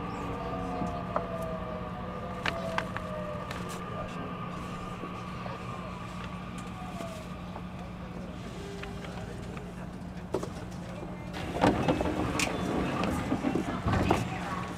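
A train hums steadily while standing close by.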